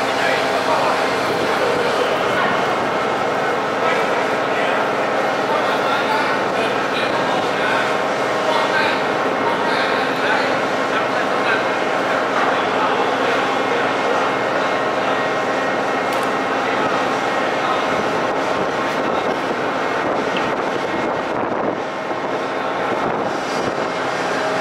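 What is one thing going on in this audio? Workers talk to each other at a distance in a large echoing space.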